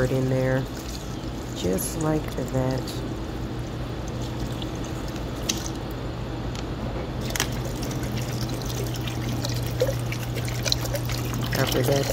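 Water pours and splashes into a pot.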